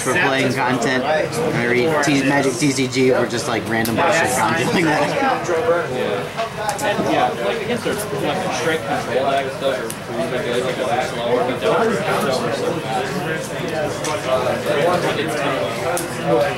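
Playing cards tap and slide softly on a table.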